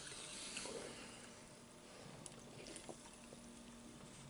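A man sips from a can.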